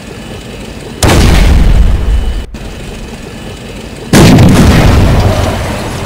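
A tank cannon fires with a booming blast.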